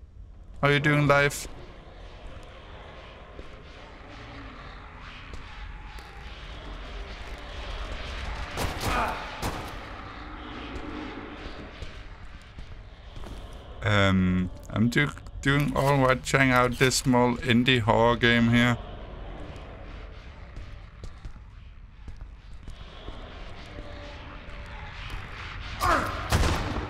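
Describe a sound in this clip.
A young man talks casually into a close microphone, with pauses.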